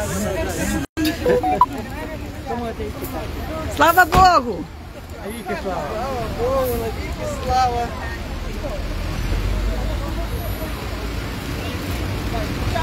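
A crowd of elderly women and men talk and call out loudly nearby outdoors.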